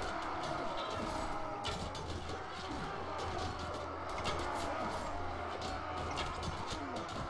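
Weapons clash and clang in a busy battle.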